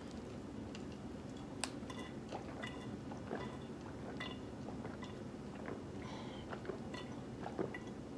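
A woman gulps a drink.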